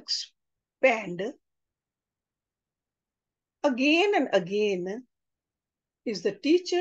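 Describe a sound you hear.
An older woman speaks calmly over an online call, in short phrases with pauses.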